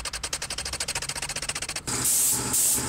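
A file rasps back and forth across a metal part.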